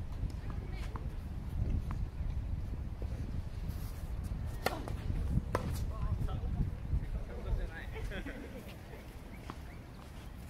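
Tennis rackets hit a ball with sharp pops.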